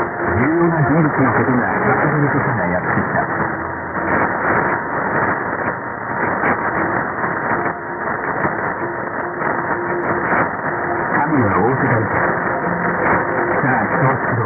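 A shortwave radio hisses with crackling static throughout.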